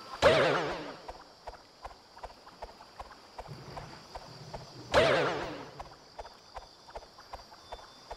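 Footsteps patter softly on grass.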